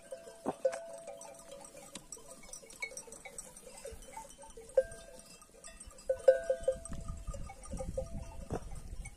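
Sheep tear and munch grass close by.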